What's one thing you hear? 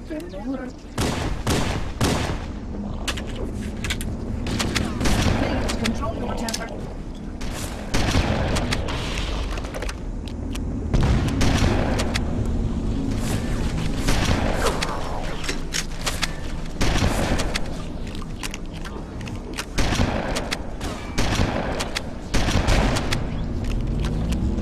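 Gunshots fire in loud, sharp bursts.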